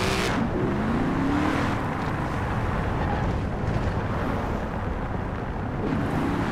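A sports car engine roars loudly, its pitch rising and falling as it slows down.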